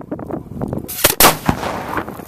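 A loud explosion booms outdoors and rumbles away.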